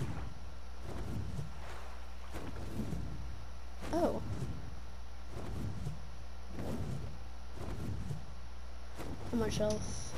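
Large wings beat in a steady rhythm.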